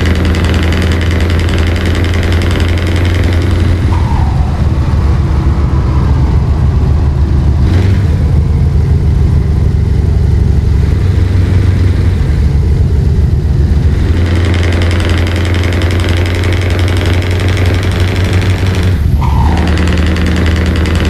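A truck engine drones steadily as the truck drives along.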